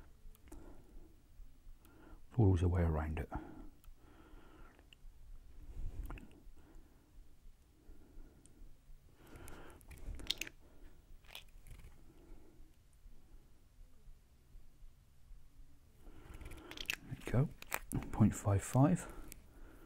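Small plastic bottles click softly as they are handled.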